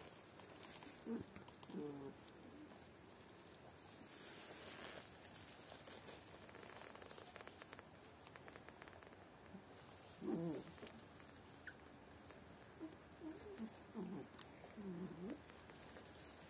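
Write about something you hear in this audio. Puppies whimper and yelp in short high cries.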